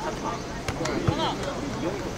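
A soccer ball is kicked with a dull thump.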